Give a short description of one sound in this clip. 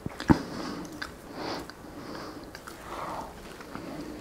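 A man chews food noisily.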